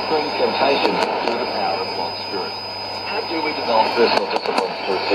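A shortwave radio plays a voice through its small speaker.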